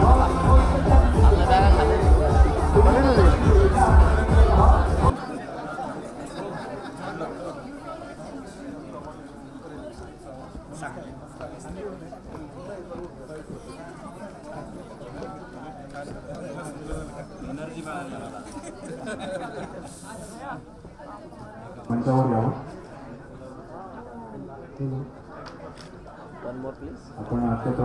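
A crowd of men and women chatter all around in a large, busy room.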